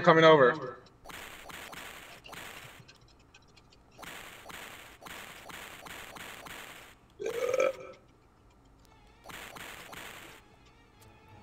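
Short hissing electronic game sounds play in repeated bursts.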